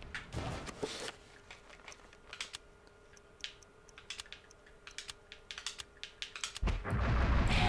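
Soft menu clicks tick in near silence.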